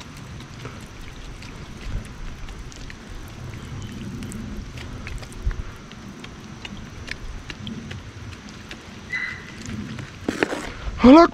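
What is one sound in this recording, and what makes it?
Lighter fluid squirts onto charcoal in a grill.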